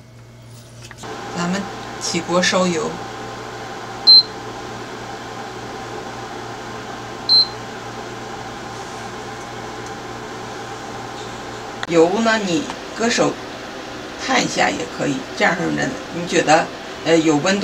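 An induction hob hums steadily.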